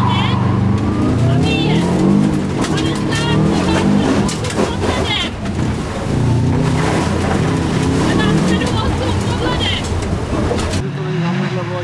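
A car engine roars and revs hard, heard from inside the car.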